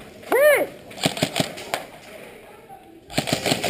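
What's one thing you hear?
An airsoft rifle fires.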